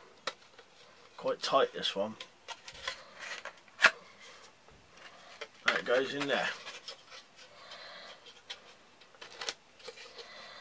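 A small metal tin clicks and rattles in a man's hands.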